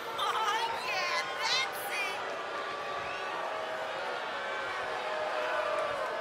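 A large crowd cheers and roars in a big open arena.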